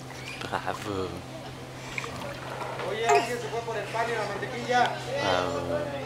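Water splashes softly as a toddler's feet dip into a pool.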